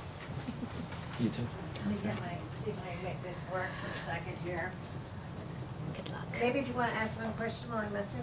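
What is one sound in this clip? A woman speaks calmly to a room.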